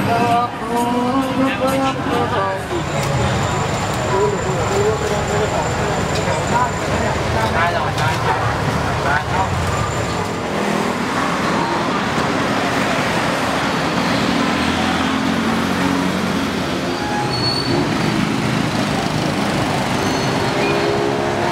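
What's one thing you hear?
A crowd of people chatters in a busy outdoor street.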